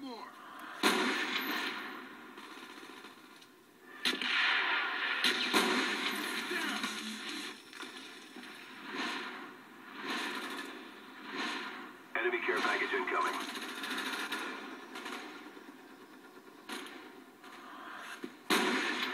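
A sniper rifle fires sharp, loud shots.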